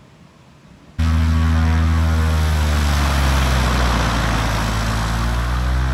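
A small plane's propeller engine idles close by with a throbbing hum.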